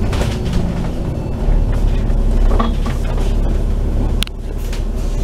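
A vehicle engine rumbles low and steadily while driving.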